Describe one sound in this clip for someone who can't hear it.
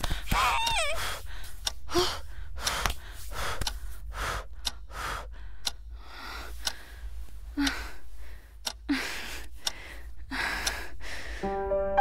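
A young woman blows short breaths, close by.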